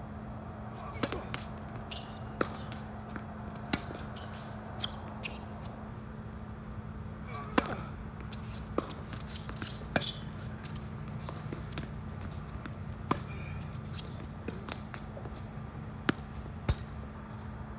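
A tennis racket strikes a ball with sharp pops.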